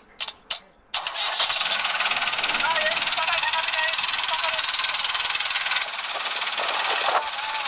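A tractor engine runs loudly and steadily.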